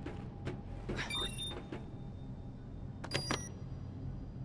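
A keypad beeps with short electronic tones.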